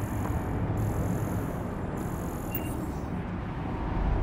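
A scanner hums with a high electronic whine.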